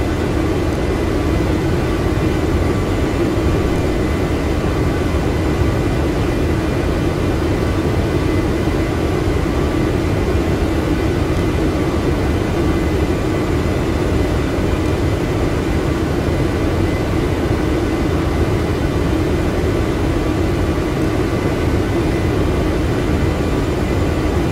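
Jet engines roar steadily with a constant low hum.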